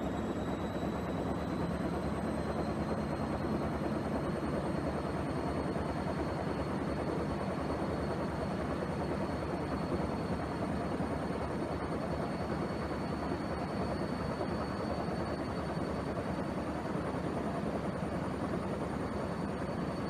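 Water sloshes and splashes inside a washing machine.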